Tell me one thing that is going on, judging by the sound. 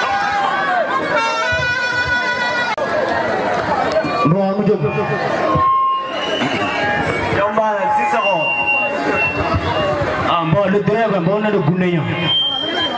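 A man speaks with animation through a microphone over loudspeakers.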